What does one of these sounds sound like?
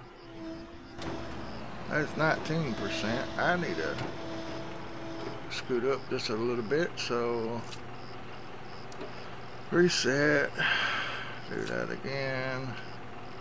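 A backhoe loader's diesel engine rumbles as it digs.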